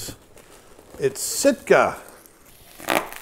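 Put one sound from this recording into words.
Plastic bubble wrap crinkles.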